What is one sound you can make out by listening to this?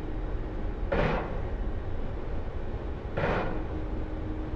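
Explosions boom one after another.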